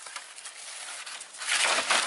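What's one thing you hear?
Dry leaves rustle underfoot.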